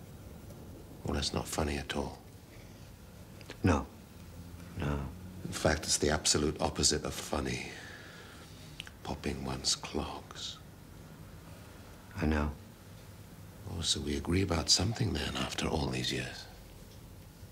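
An older man speaks slowly and wearily, close by.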